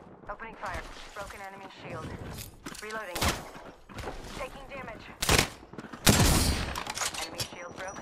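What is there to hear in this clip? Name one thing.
Gunshots ring out in short, sharp bursts.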